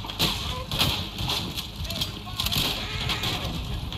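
A wooden wagon rattles and creaks along a dirt track.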